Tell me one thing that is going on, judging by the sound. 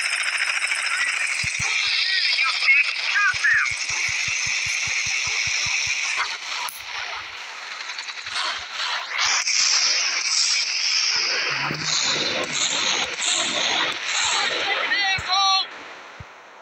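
A helicopter's rotor thuds loudly overhead.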